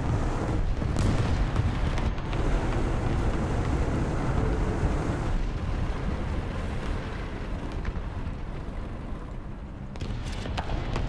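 A tank cannon fires with sharp booms.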